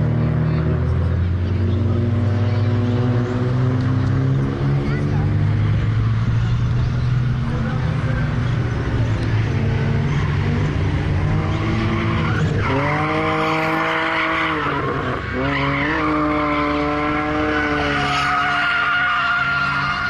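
Motorcycle engines idle loudly nearby.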